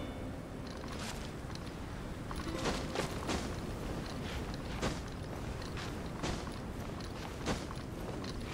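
A game character's hands and feet scrape against rock while climbing.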